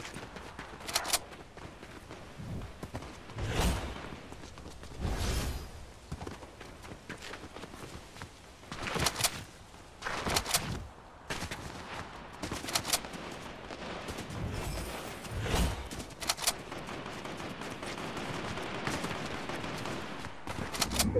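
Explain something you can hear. Footsteps run over grass and pavement.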